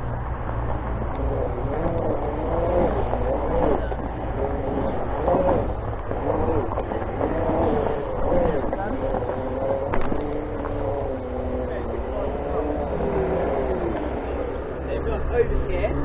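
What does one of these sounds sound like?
An electric motor whines, rising and falling in pitch as a self-balancing scooter rolls along.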